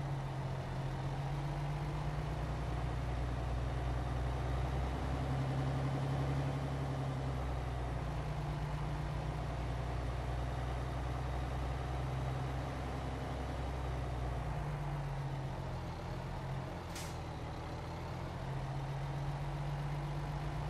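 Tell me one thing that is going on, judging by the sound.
A truck's diesel engine rumbles steadily, rising and falling as it manoeuvres.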